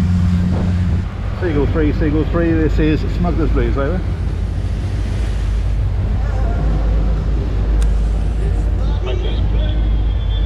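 A boat engine rumbles steadily.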